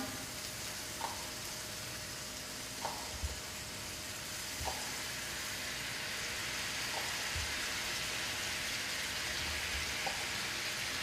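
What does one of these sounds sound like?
Utensils clink softly against a pan.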